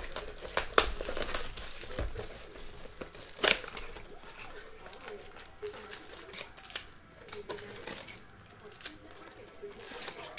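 Cardboard packaging rustles and tears as a box is opened.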